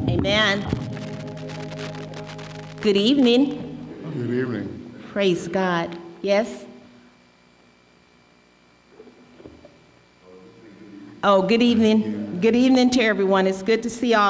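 An elderly man sings slowly with long held notes through a microphone, in an echoing hall.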